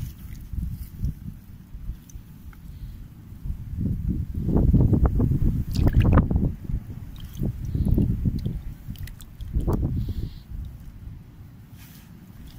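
Wet grass roots rustle and drip as fingers pull them apart.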